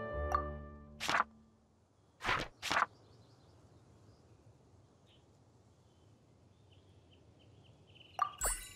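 Soft game menu clicks and swooshes sound as pages turn.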